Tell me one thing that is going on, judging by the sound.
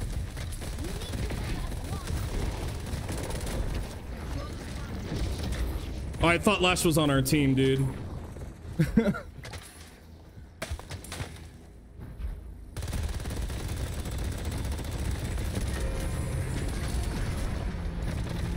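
Energy weapons fire in quick blasts amid a game's battle.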